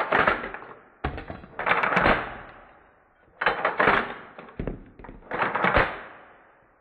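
A gun's metal action clicks and clacks.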